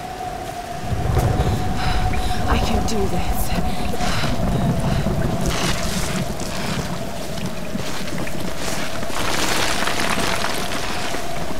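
Rock and wood scrape and rumble during a scramble.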